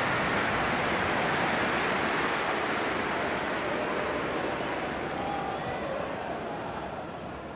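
A large stadium crowd roars and cheers steadily, slowly fading.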